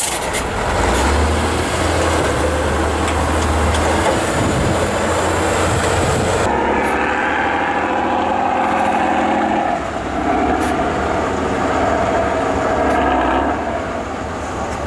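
A heavy truck engine roars and revs loudly outdoors.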